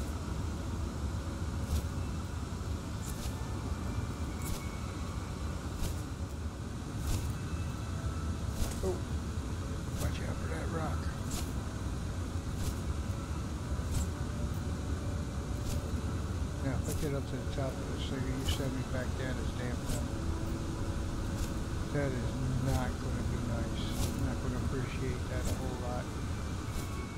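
A jetpack roars with a steady low rush.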